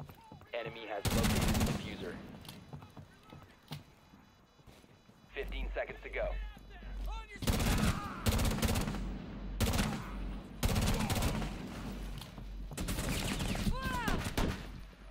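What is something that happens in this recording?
Rifle shots fire in loud bursts.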